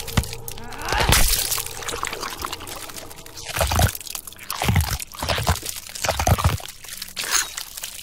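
Wet flesh tears and squelches.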